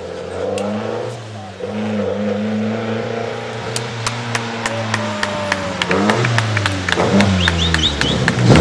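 A rally car engine roars loudly, revving and shifting gears.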